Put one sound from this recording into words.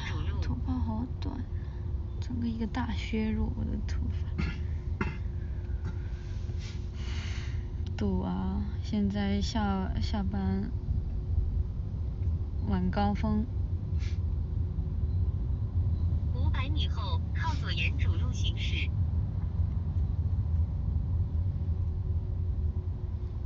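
A low engine rumble hums steadily inside a car.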